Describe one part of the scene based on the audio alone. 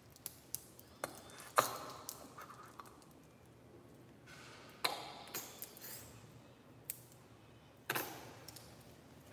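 A spray bottle hisses in short bursts.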